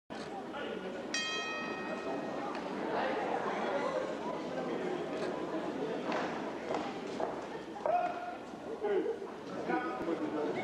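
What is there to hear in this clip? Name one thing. A crowd murmurs and shouts in a large echoing hall.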